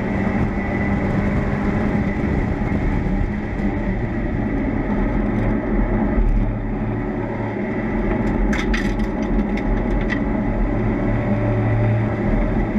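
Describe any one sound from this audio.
A race car engine roars loudly from inside the open cockpit, rising and falling in pitch as the gears shift.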